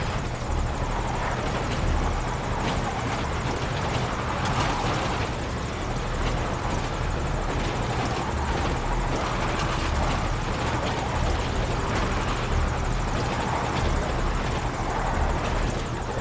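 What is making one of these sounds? A truck engine rumbles steadily as it drives over rough ground.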